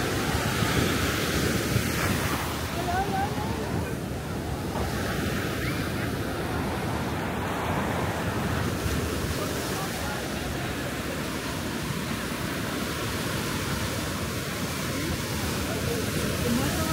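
Wind blows steadily past the microphone.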